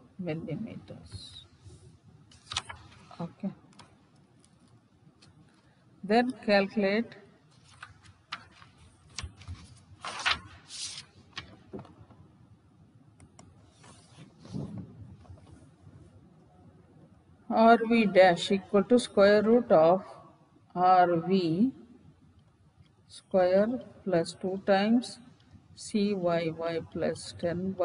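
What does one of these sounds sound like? A woman speaks calmly through a microphone, with pauses.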